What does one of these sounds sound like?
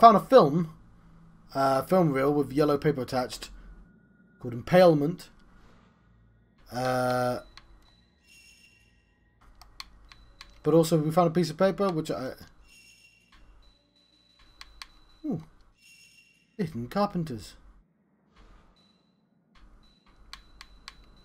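Soft game menu clicks and chimes sound as options are selected.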